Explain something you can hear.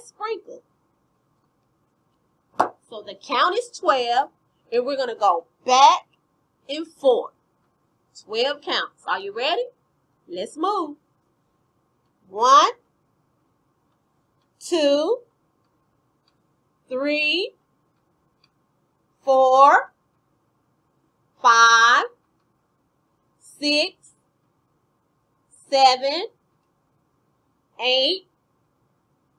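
A young woman sings and talks with animation close by, with pauses between phrases.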